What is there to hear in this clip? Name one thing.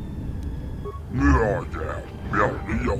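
A gruff, alien-sounding voice speaks close up.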